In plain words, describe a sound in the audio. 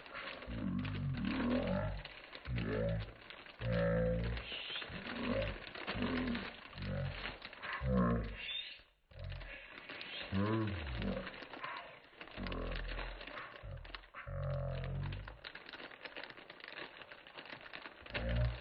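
Plastic wrap crinkles as hands handle it.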